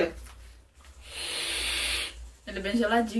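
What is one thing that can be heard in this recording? A young man draws a long hissing breath through a vape.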